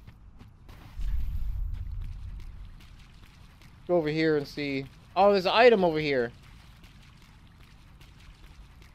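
Footsteps splash through shallow water.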